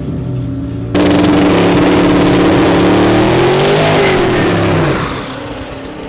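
A car engine roars loudly as it revs.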